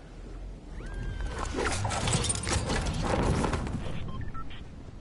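A glider snaps open with a loud whoosh.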